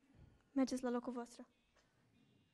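A woman speaks loudly through a microphone in an echoing hall.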